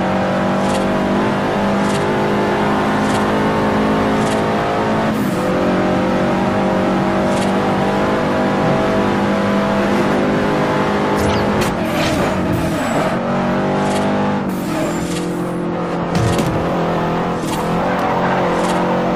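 A racing car engine roars loudly at high revs.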